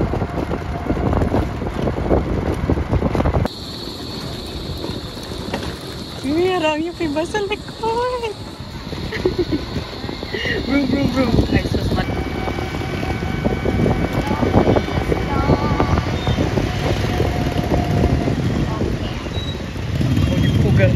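A motorbike engine rumbles steadily as the vehicle rides along.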